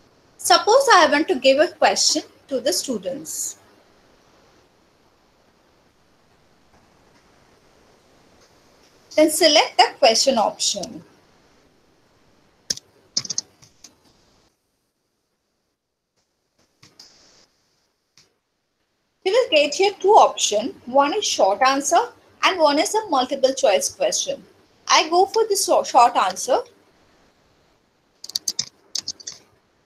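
A young woman speaks calmly through a microphone on an online call.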